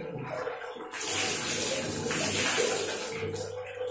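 Water splashes as it is poured over a head.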